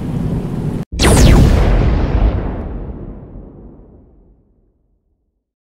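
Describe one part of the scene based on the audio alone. Thunder cracks loudly and rumbles away.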